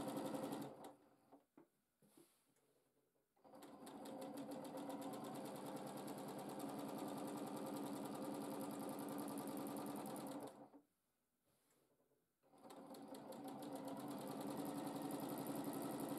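A sewing machine whirs and hums rapidly as it stitches, stopping and starting again.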